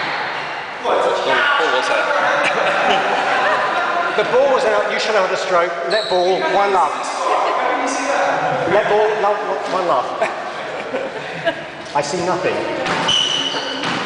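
A young man talks loudly in an echoing room.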